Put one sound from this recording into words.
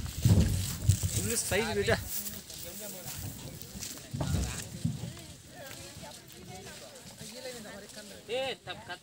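A man talks close to the microphone outdoors.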